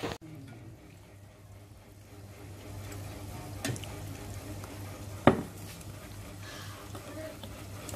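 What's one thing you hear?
A metal ladle clinks against a metal bowl.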